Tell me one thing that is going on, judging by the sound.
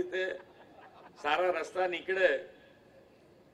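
An elderly man speaks calmly into a microphone over a loudspeaker.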